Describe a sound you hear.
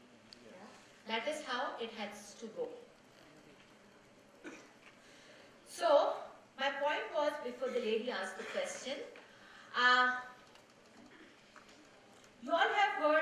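A woman speaks into a microphone over a loudspeaker in a large echoing hall, in short bursts with pauses.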